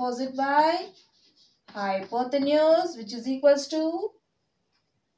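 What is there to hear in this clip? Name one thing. A young woman speaks clearly, explaining.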